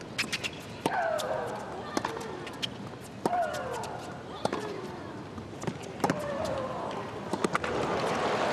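A tennis ball is struck hard back and forth.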